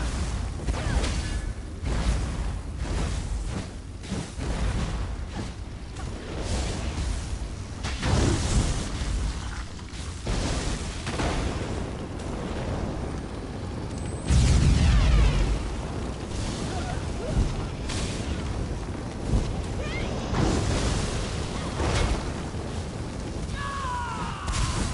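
Heavy blows and explosions boom again and again.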